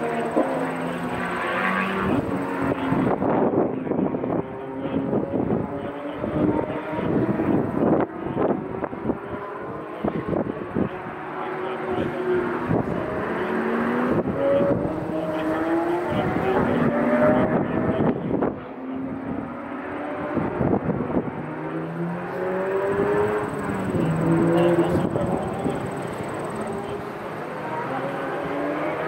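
Small racing engines whine and buzz as they rise and fall in pitch around a track.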